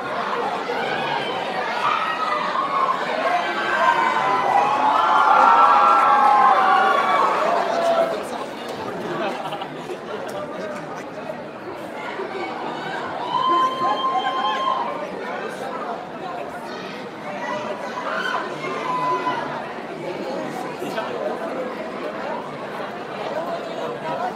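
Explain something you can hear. A young man sings into a microphone in a large echoing hall.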